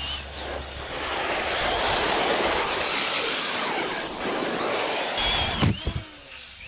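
Tyres hiss and crunch over rough asphalt.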